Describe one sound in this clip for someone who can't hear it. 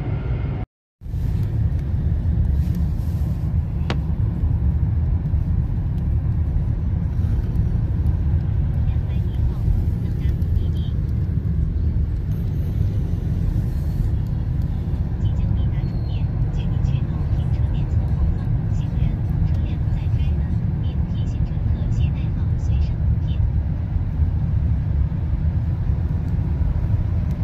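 A vehicle's engine rumbles steadily, heard from inside while driving.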